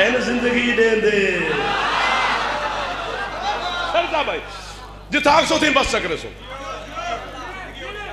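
A young man speaks passionately into a microphone over loudspeakers, his voice rising and falling.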